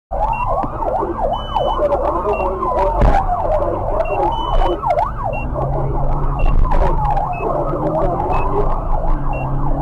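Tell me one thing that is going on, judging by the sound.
A car engine hums steadily as it drives along a road.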